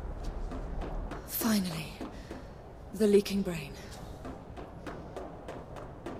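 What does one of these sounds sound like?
Footsteps tap on a hard walkway.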